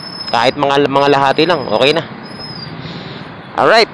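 Motorcycle engines hum as they pass by on the street.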